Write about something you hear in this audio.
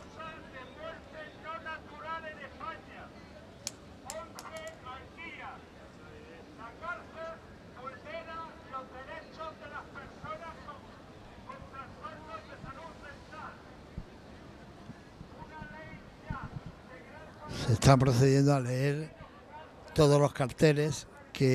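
A crowd of protesters talks and murmurs outdoors.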